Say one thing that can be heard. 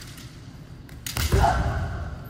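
Bamboo swords strike with a sudden crack.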